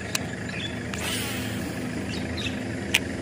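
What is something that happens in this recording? A fishing line whizzes off a reel during a cast.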